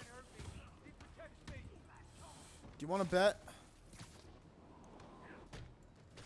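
Punches land with heavy thuds during a brawl.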